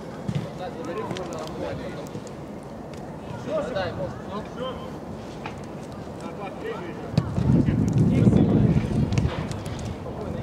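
A football thuds as it is kicked on an outdoor pitch.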